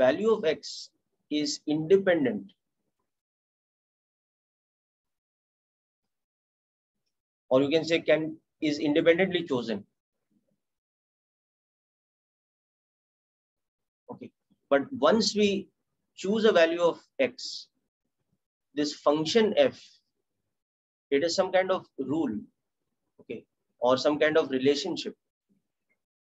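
A man speaks calmly and explains, heard close through a microphone, in short phrases with pauses.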